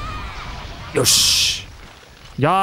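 A heavy blow lands with a loud crash.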